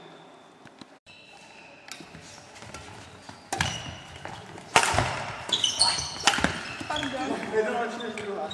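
A shuttlecock is struck sharply with a racket in a large echoing hall.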